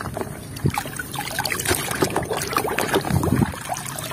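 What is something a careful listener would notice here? Thick liquid sloshes as it is stirred.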